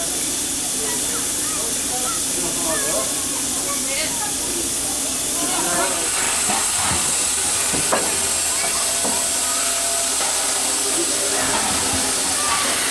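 A steam locomotive hisses steadily.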